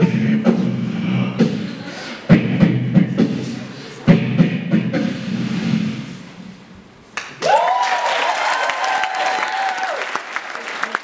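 A group of young men and a young woman sing together without instruments.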